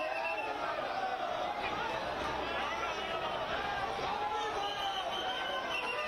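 A large crowd cheers and chants loudly outdoors.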